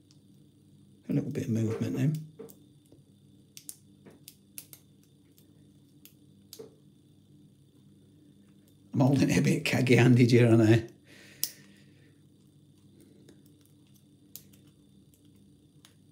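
Metal picks click softly inside a lock.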